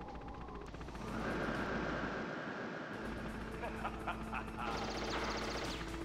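A helicopter's rotor thrums loudly.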